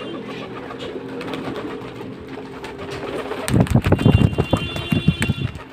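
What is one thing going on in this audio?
Pigeon wings flap loudly close by.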